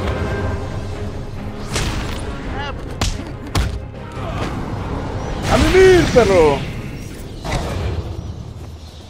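Heavy punches and thuds land in a fight.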